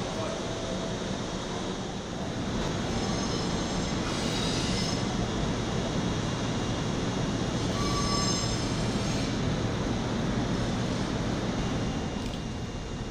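A train rolls slowly past, rumbling and clattering on the rails.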